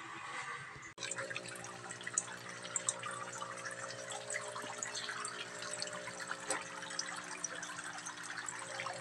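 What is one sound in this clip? Water trickles and splashes steadily into a pond.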